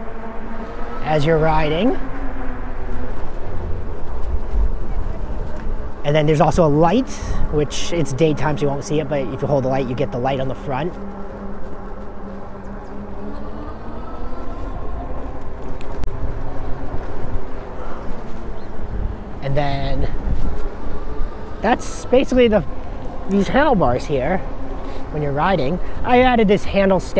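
Bicycle tyres roll steadily along a paved path.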